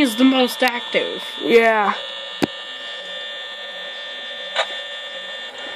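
A steady electronic hum plays from a small tablet speaker.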